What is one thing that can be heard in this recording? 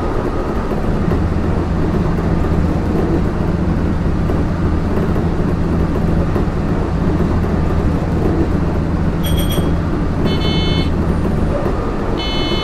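A train's motor hums low and steady.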